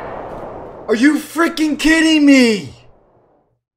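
A young man shouts in dismay close to a microphone.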